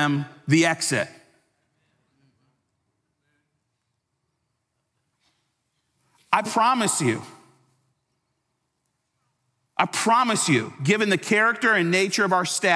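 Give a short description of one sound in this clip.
A man speaks with emphasis through a microphone, pausing between phrases.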